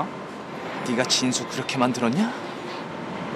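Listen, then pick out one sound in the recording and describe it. Another young man answers sharply close by.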